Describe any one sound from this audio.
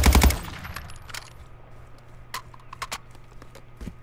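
A gun's metal parts click and clack during a reload.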